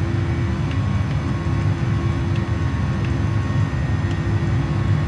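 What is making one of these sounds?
Jet engines drone steadily, heard from inside a cockpit.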